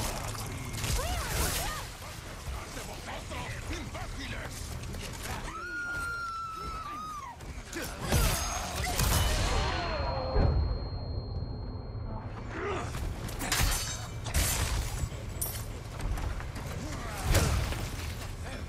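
Heavy blows land with dull thuds.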